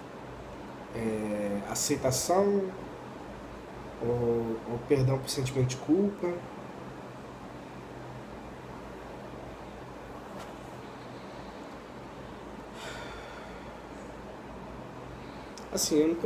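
A young man speaks casually and close up, with pauses.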